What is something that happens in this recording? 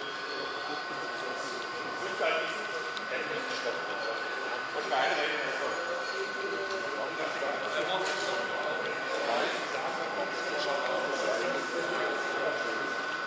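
A model train rolls along the track with a steady whir.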